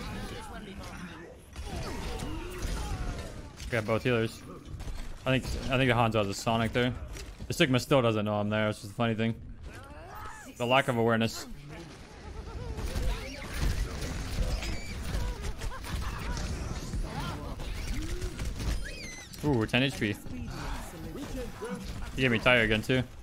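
Gunfire and explosions boom from a video game.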